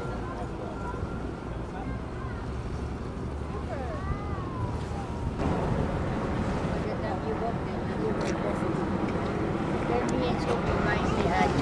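A crowd of adults and children chat outdoors.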